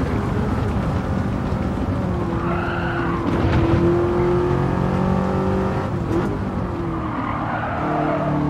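A car engine roars steadily, its pitch rising and falling as the car speeds up and slows down.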